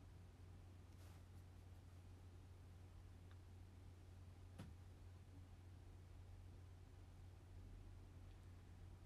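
A phone taps quietly under a fingertip.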